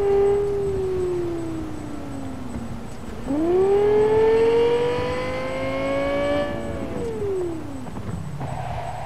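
A sports car engine revs high and shifts gears as the car speeds up.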